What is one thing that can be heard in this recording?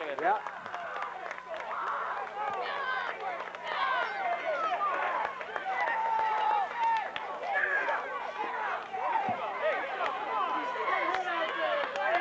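A crowd of children and adults cheers and shouts excitedly outdoors.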